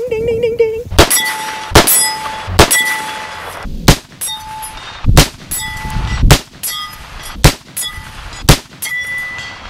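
A rifle fires loud, sharp shots again and again.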